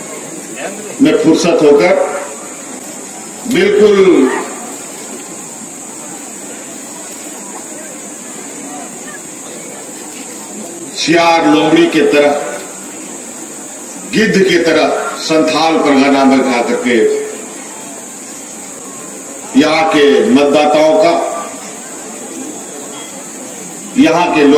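A man speaks forcefully into a microphone over a loudspeaker, in bursts with pauses.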